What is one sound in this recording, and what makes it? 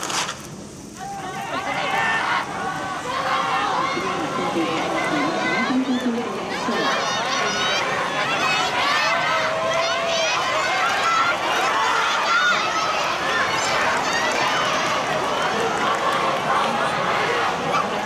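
A large crowd of spectators cheers and shouts from the stands of an open stadium.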